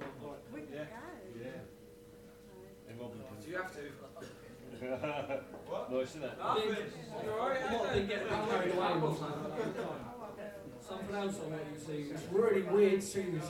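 A young man talks calmly through a microphone.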